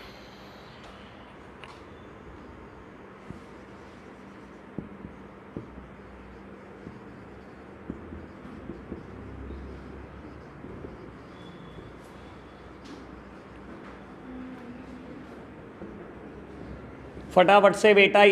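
A man writes on a whiteboard with a squeaking marker.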